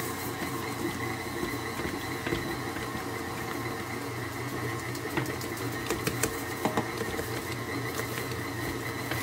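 A stand mixer whirs steadily.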